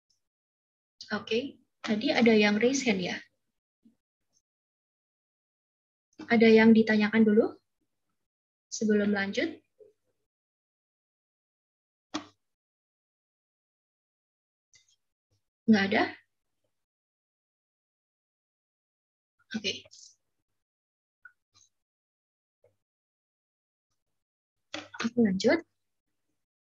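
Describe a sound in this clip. A young woman speaks calmly through an online call, with pauses.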